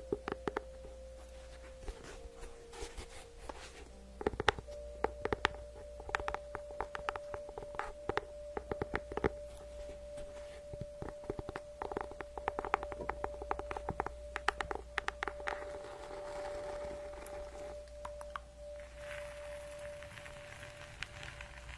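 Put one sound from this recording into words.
A young woman whispers softly into a microphone.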